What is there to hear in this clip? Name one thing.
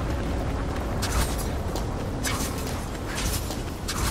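A magical dash whooshes past in quick bursts.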